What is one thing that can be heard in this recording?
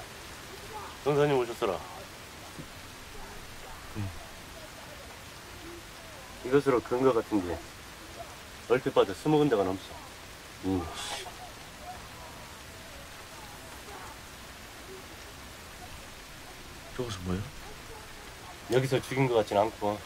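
A man speaks in short, tense bursts nearby.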